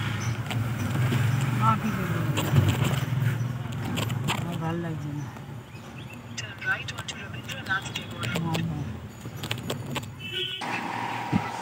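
A car engine hums low inside a car.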